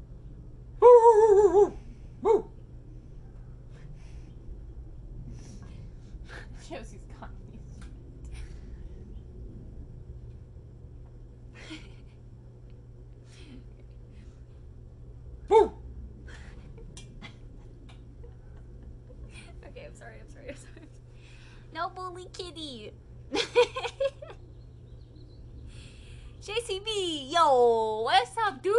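A young woman speaks and laughs in short bursts close by.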